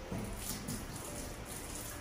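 Water runs briefly from a tap.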